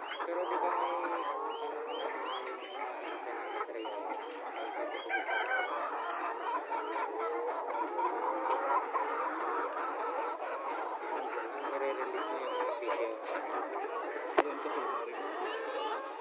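Many hens cluck and squawk close by.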